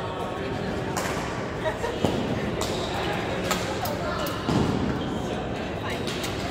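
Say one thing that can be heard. Shuttlecocks are struck with rackets in sharp, quick taps.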